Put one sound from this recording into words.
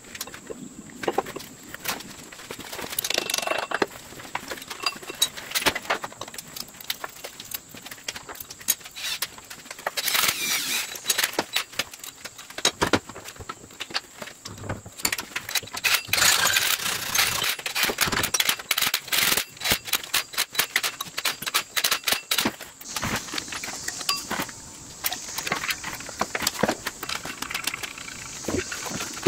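Metal parts clink and scrape against each other.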